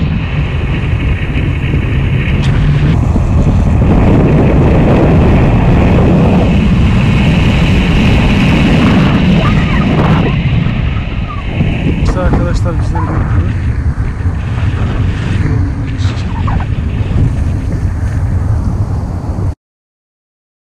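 Wind roars loudly against a microphone in flight.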